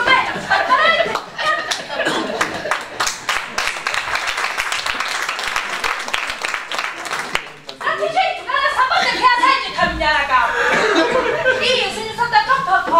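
A woman speaks loudly and with feeling in a large hall.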